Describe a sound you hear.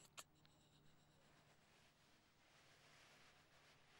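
A young woman sobs quietly nearby.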